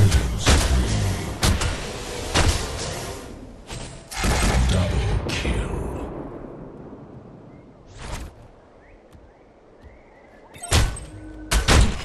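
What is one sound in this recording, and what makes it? Magical blasts and impacts burst out loudly in a fight.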